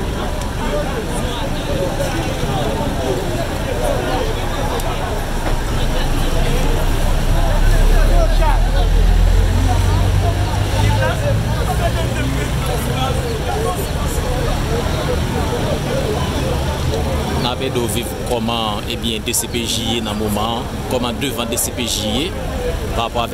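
Several men talk over one another nearby outdoors.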